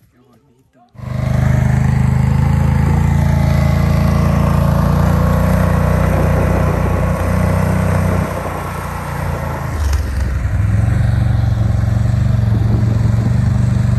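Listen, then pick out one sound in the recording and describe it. A quad bike engine roars steadily up close.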